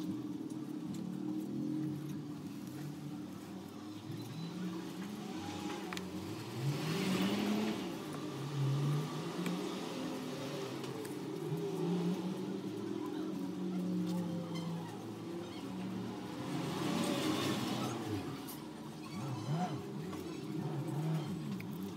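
Fingers rub and scrape dry plaster from a cast.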